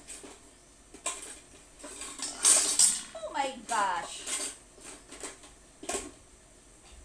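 Dishes and utensils clink and clatter close by.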